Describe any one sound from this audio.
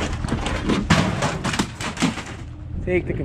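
Boots thump and clatter on a truck bed.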